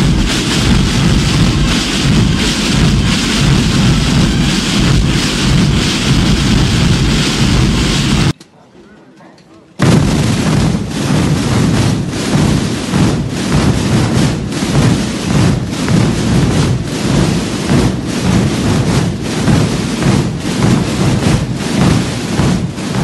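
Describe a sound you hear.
Many drums pound together in a loud, dense, rolling roar outdoors.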